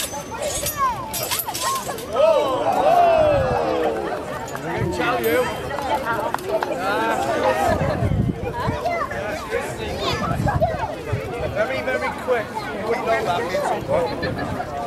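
Children chatter and call out excitedly nearby in a crowd outdoors.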